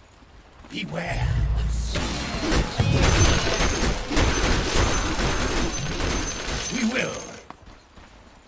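Game spells boom and crackle during a fight.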